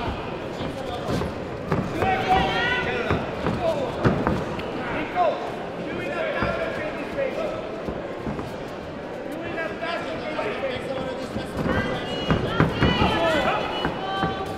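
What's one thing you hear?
Gloved punches and kicks thud against padding.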